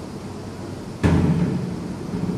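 A dish knocks down on a hard counter.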